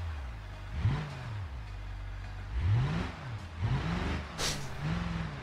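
A car engine revs up and down again and again.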